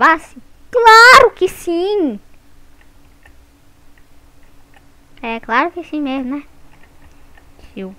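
A young boy talks excitedly and loudly into a headset microphone.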